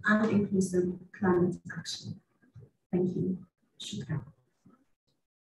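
A woman speaks calmly through a loudspeaker.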